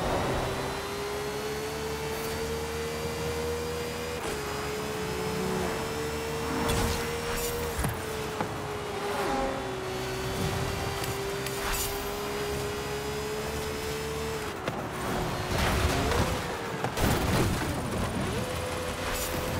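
A race car engine roars at high speed, its pitch dropping briefly with each gear change.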